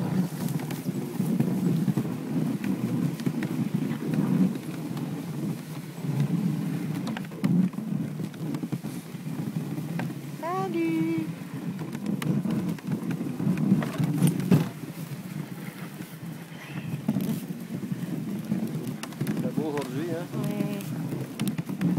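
Sleigh runners hiss and crunch over packed snow.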